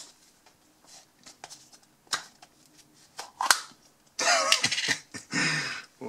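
A plastic lid twists and pops off a tub.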